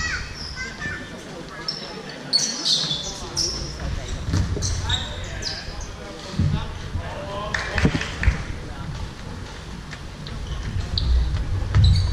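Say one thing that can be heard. Young players shout to each other across a large echoing hall.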